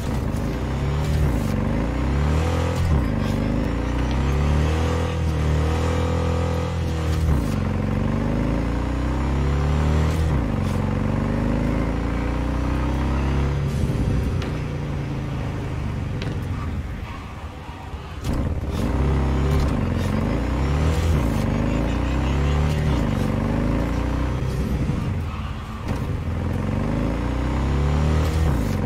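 A motorcycle engine roars and revs up and down through gear changes.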